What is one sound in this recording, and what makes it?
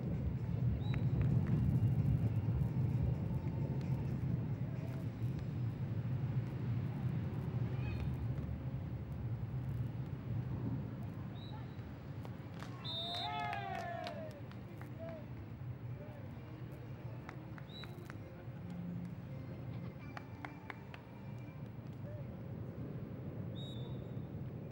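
A crowd of spectators murmurs outdoors.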